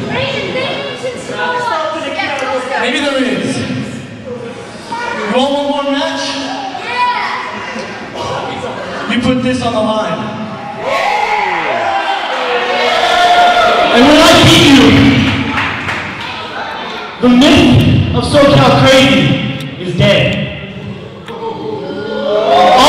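A man shouts forcefully into a microphone over a loudspeaker in a large echoing hall.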